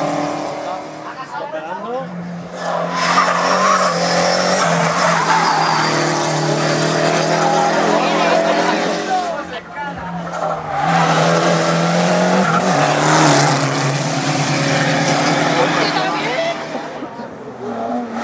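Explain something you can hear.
Small rally hatchbacks rev hard and shift gears as they climb past one after another.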